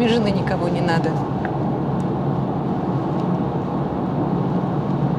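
A car engine hums steadily with road noise from inside the car.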